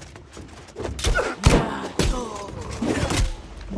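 Sword blows clang and thud against an enemy.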